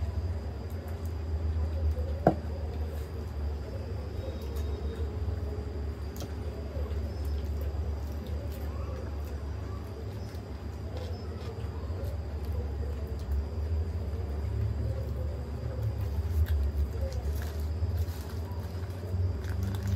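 A woman and a girl chew food noisily, close to a microphone.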